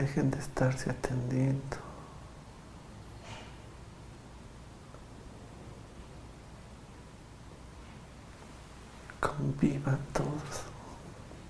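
A man speaks quietly and close by.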